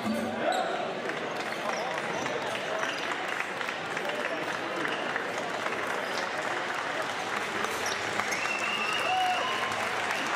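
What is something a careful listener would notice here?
Players clap and slap hands together.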